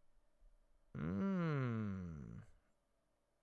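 A young man hums thoughtfully, his pitch falling.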